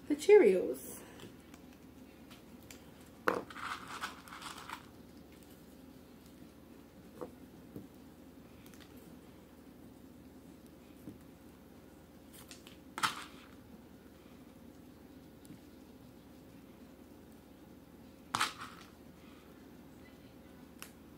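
Paper rustles and crinkles close by as strips are handled.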